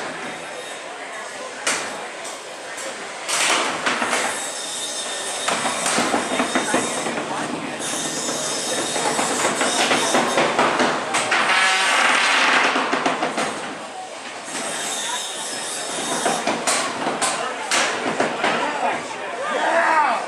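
Small robots whir and scrape across a hard floor.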